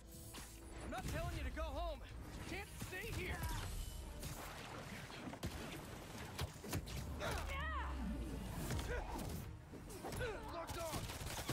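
Punches and thuds of a fight land in quick bursts.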